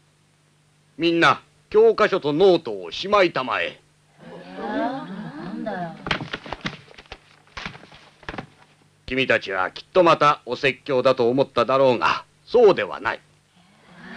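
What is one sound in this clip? A middle-aged man speaks sternly, close by.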